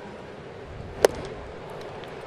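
A pitched baseball smacks sharply into a catcher's mitt.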